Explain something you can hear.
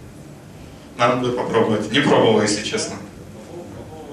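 A young man speaks loudly through a microphone in an echoing hall.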